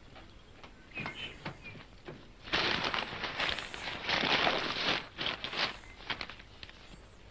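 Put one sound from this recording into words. A man chuckles softly close to a microphone.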